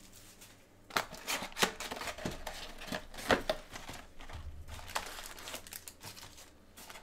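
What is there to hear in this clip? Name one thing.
A cardboard box lid is pulled open with scraping and rustling.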